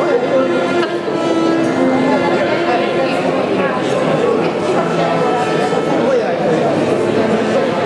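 A cello plays a slow, singing melody.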